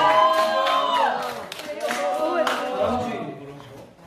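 Teenage girls clap their hands.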